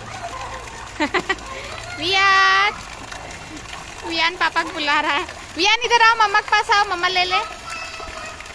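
A young child squeals and shouts excitedly nearby.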